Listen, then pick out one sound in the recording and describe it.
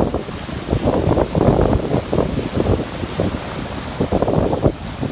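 Waves crash and surf washes over the shore close by.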